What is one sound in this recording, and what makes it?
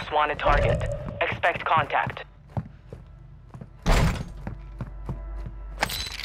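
Footsteps thud on a wooden floor and stairs.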